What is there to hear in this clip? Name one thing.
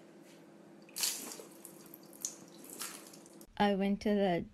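Liquid pours and splashes onto a hard floor.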